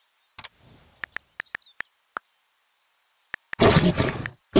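Keyboard keys click in quick, short taps.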